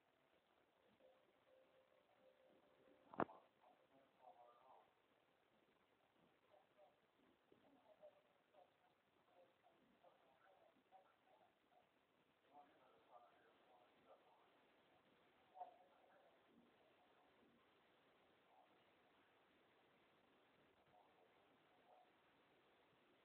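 A woman speaks faintly through a television loudspeaker.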